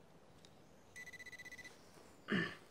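A metal detector beeps in quick pulses.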